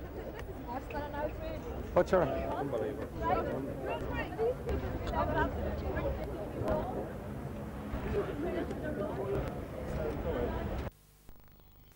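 A crowd of men and women talk and murmur all around outdoors.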